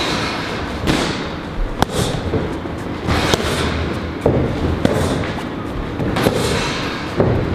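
Punches smack sharply into padded mitts.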